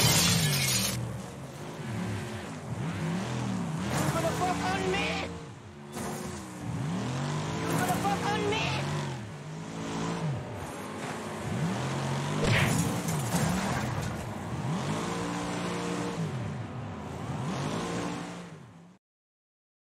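A car engine revs hard and shifts gears.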